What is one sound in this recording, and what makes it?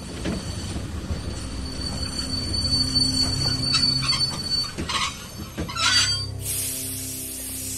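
A diesel locomotive engine rumbles steadily nearby.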